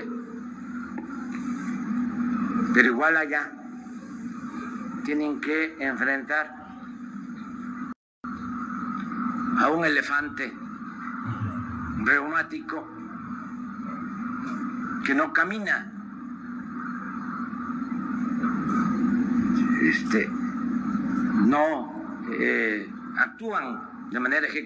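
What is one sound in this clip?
An elderly man speaks calmly into a microphone, heard through a loudspeaker outdoors.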